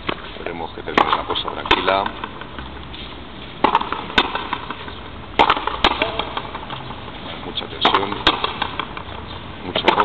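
A ball smacks hard against a wall and a racket, echoing outdoors.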